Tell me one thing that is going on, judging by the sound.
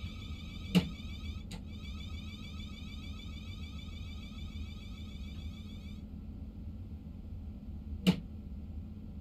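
Train wheels clack over a rail joint.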